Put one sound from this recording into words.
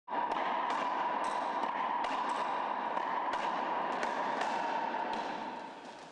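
A ball smacks sharply against the walls of an echoing court.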